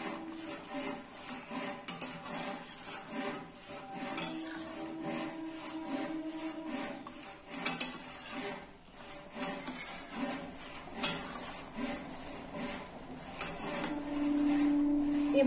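A spatula scrapes and stirs food in a metal pan.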